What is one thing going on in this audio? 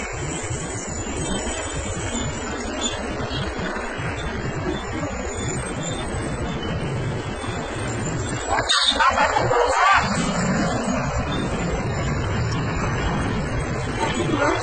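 A truck engine rumbles and strains nearby.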